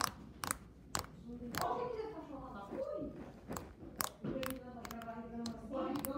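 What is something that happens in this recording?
Slime squishes and pops between fingers.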